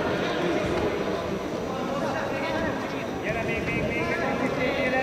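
A large crowd murmurs and calls out in an echoing hall.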